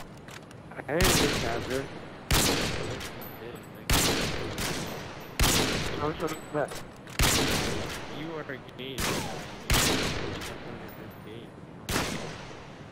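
A bolt-action sniper rifle fires sharp, echoing shots in a video game.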